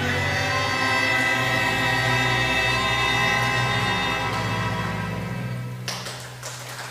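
A string orchestra plays a long, sustained final chord in a large hall.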